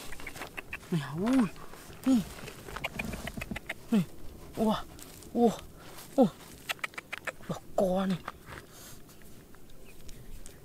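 Small stones click and scrape as hands pick through loose gravel.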